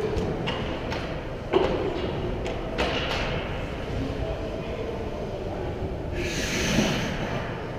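Ice skates scrape across the ice in a large echoing rink.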